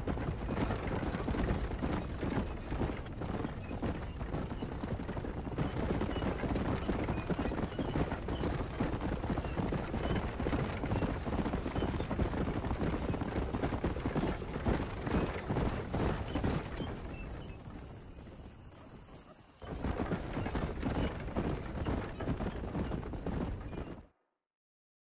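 Horse hooves clop quickly on packed earth.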